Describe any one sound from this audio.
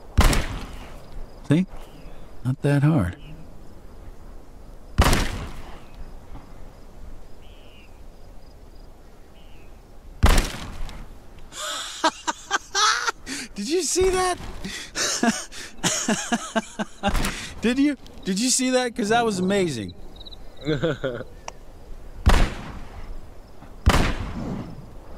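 A rifle fires loud single shots that echo briefly.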